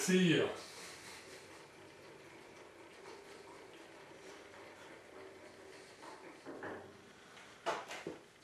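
A milling machine motor hums steadily.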